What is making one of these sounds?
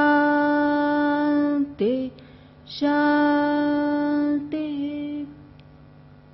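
A middle-aged woman sings long, steady held notes through a microphone.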